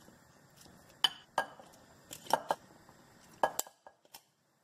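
Ingredients thud and knock as they drop into a pot.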